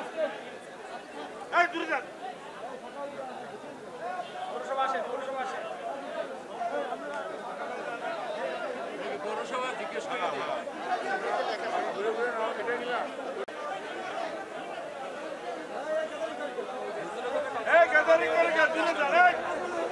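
A crowd of men murmurs and talks nearby outdoors.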